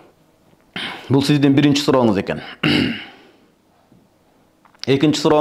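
A man reads aloud close to a microphone, in a melodic chanting voice.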